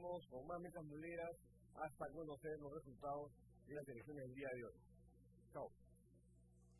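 A middle-aged man speaks calmly and animatedly into a close microphone.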